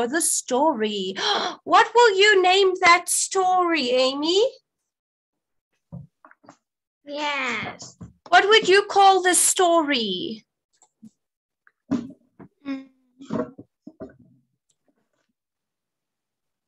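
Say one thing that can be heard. A young girl speaks over an online call.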